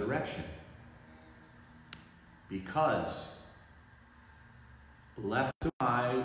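A middle-aged man speaks slowly and solemnly, close by, in a reverberant hall.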